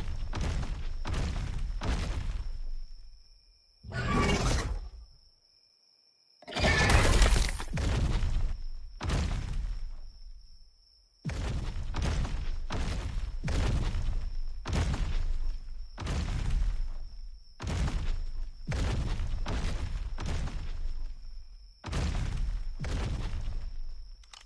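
A large creature's heavy footsteps thud in a steady rhythm.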